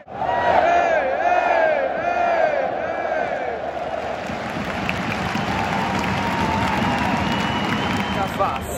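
A large crowd roars and cheers in an open stadium.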